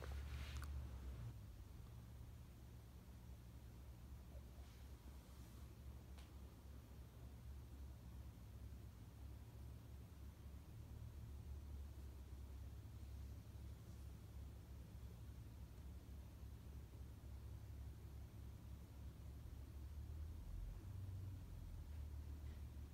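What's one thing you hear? A ceiling fan whirs and hums steadily with a low, pulsing drone.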